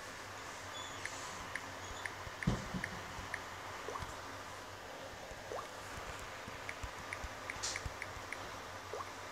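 A phone's keyboard gives short, soft clicks as keys are tapped.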